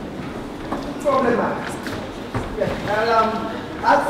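A young woman speaks with animation in a large, slightly echoing room.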